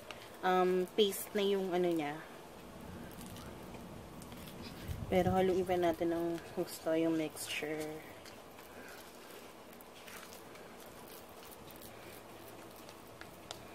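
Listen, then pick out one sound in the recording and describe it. Plastic rustles and crinkles in a woman's hands.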